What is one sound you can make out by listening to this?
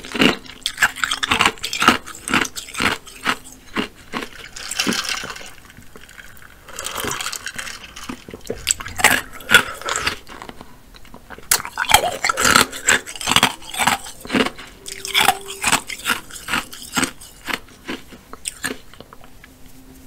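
A woman chews food wetly and smacks her lips close to a microphone.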